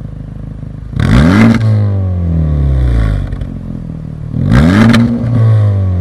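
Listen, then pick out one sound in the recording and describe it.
A car engine revs sharply and falls back with a loud exhaust roar, twice.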